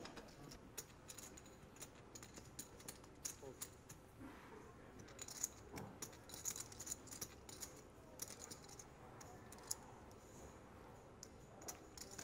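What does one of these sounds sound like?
Poker chips click and clatter as they are handled.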